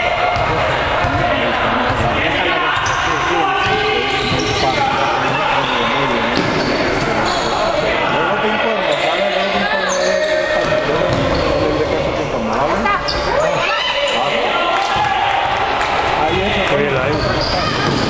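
Sneakers squeak on a hard court floor in a large echoing hall.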